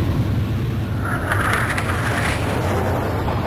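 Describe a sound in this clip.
A jet whooshes past with a rising rush of air.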